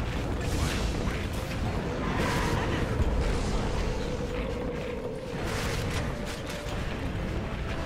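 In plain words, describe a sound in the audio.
Magic spells crackle and whoosh in a game battle.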